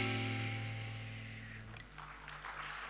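A guitar chord rings out on a large stage and slowly fades.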